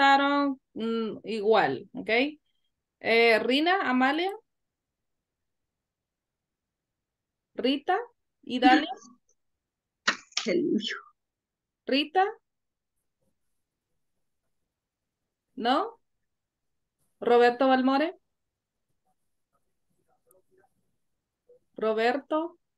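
A woman speaks calmly through an online call, in short phrases with pauses.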